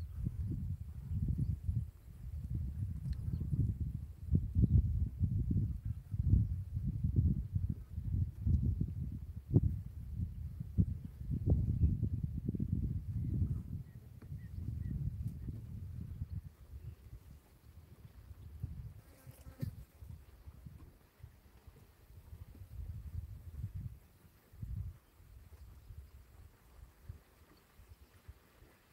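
Wind buffets the microphone outdoors in gusts, stronger at first and easing later.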